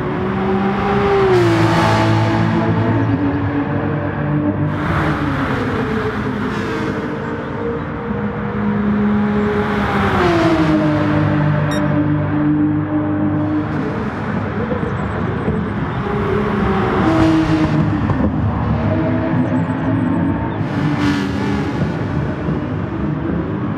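A second race car engine drones close by.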